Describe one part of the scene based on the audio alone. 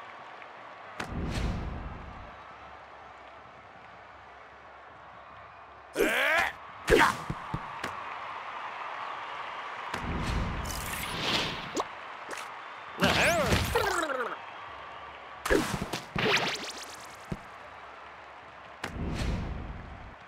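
Cartoon sound effects whoosh and jingle in short bursts.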